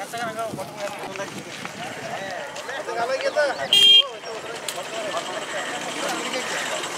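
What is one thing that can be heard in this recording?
A crowd of men talk and call out nearby outdoors.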